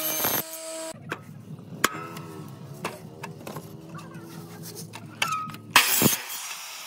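A mitre saw spins and cuts through wood.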